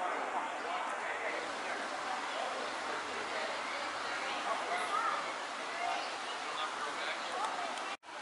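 An eagle gives high, chattering whistled calls.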